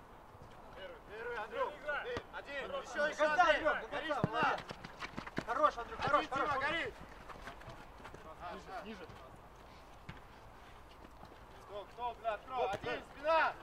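Young men shout and call out to each other outdoors.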